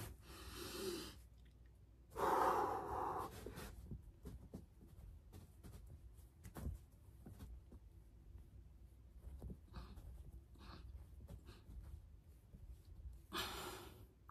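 A young woman breathes out hard and heavily close by.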